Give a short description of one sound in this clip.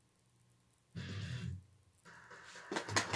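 Loud game sounds burst from a television speaker.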